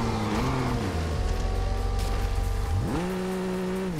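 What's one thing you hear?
A car crashes through bushes and snapping branches.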